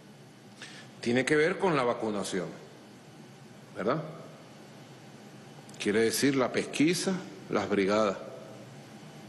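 A man speaks emphatically into a microphone, in short bursts with pauses.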